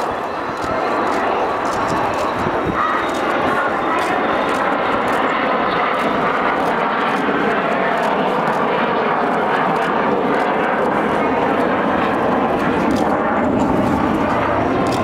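A jet engine roars steadily overhead.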